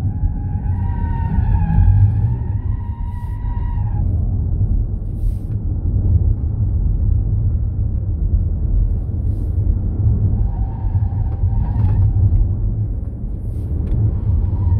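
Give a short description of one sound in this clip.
A car engine roars steadily at speed, rising and falling in pitch.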